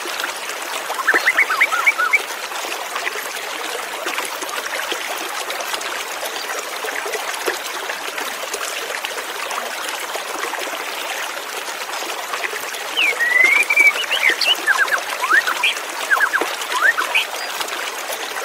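A white-rumped shama sings in bursts of clear whistled phrases.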